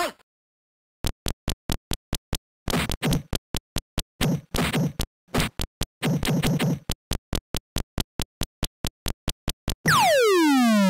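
Quick electronic beeps count out a rhythm.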